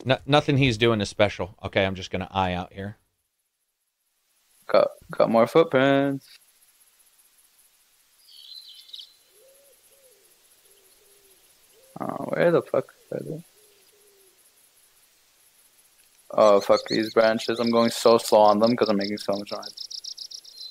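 A young man talks casually through a headset microphone, heard as if over an online call.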